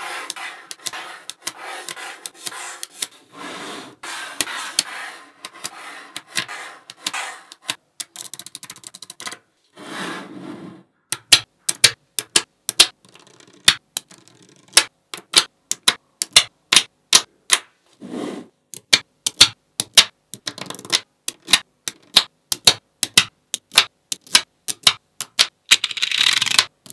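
Small metal magnetic balls click and snap together.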